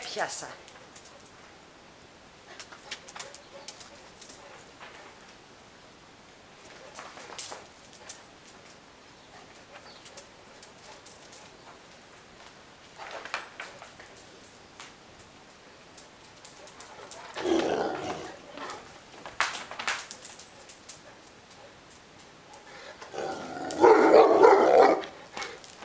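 A dog's paws patter and scrape on a hard floor.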